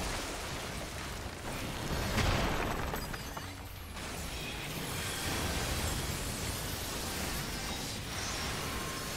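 Magic spells burst and crackle in a hectic battle.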